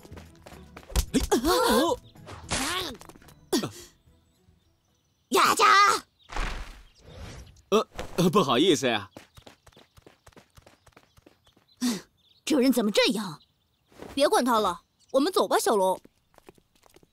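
A boy speaks with animation, close up.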